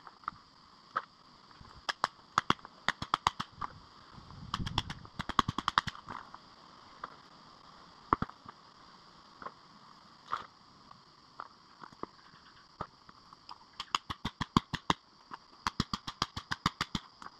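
A rock hammer strikes stone in quick, sharp blows.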